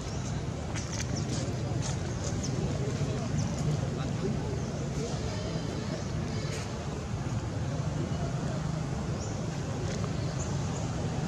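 A monkey chews and munches on food close by.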